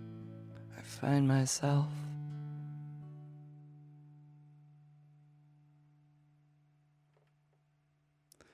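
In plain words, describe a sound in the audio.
An acoustic guitar chord is strummed and rings out slowly.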